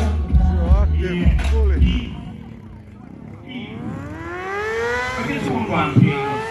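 A motorcycle engine revs up and down nearby.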